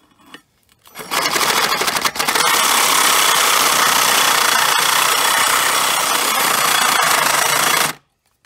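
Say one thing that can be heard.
A hand saw cuts through a metal bar.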